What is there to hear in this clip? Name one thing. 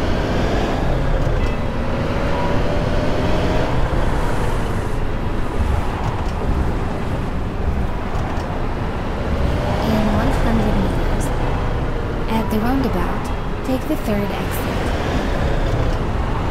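A bus engine hums steadily as the bus drives along.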